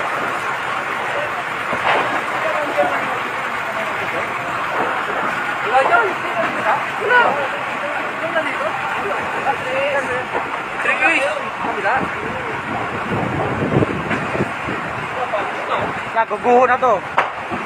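Men talk and shout excitedly nearby.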